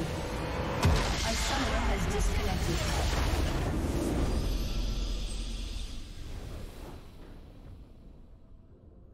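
A triumphant fanfare swells and slowly fades away.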